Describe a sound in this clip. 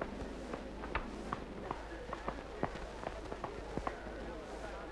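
Horse hooves clop on hard ground.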